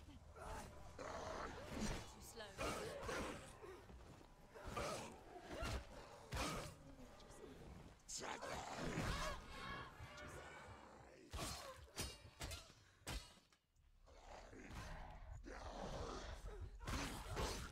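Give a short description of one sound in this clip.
Swords clash and ring in quick bursts.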